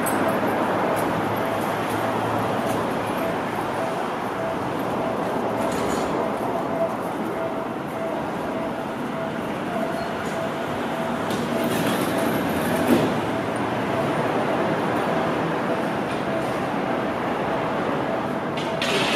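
A train rumbles along the tracks as it approaches slowly.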